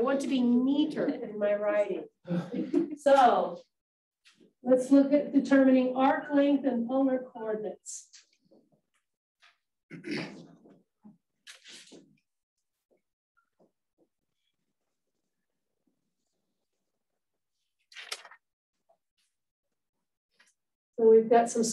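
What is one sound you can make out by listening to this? A woman speaks calmly, as if teaching.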